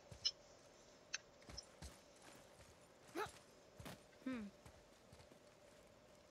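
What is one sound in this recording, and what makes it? Heavy footsteps crunch on rocky ground.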